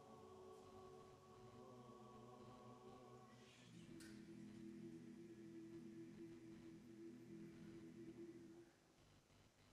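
A large choir sings in a big echoing hall, then stops.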